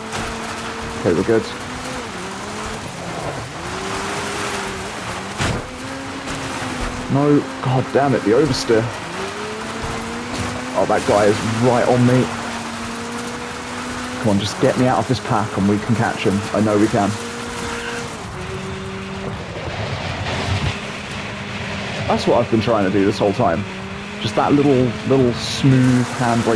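Tyres crunch and skid on loose dirt.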